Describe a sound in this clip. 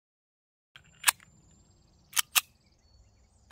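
A pistol's slide clacks as a man handles the gun.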